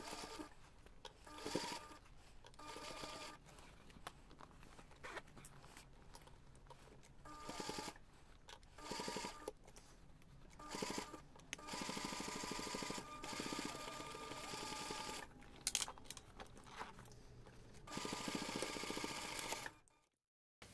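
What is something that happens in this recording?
A sewing machine stitches in short bursts, whirring and stopping.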